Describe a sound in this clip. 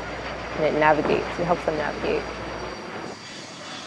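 Jet planes roar overhead.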